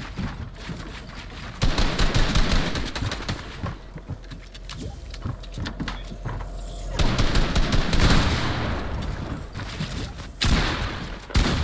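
Building pieces snap into place with quick clattering knocks.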